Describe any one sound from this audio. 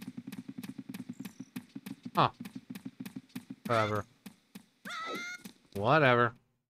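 Quick footsteps patter steadily in a game.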